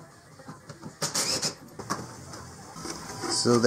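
A plastic panel clatters and scrapes as it is lifted away.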